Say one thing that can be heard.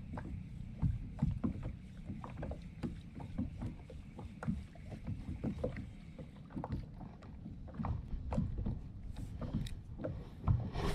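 A fishing reel clicks and whirs as it is wound.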